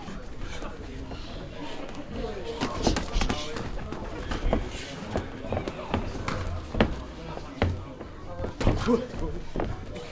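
Boxing gloves thud sharply against pads.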